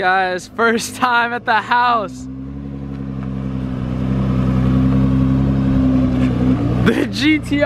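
A car engine hums steadily as the car slowly approaches.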